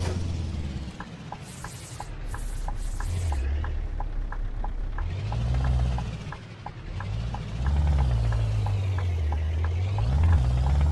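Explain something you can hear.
A turn signal ticks rapidly and evenly.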